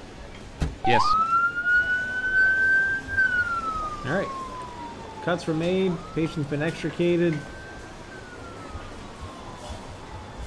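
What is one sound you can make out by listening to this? An ambulance siren wails, rising and slowly falling in pitch.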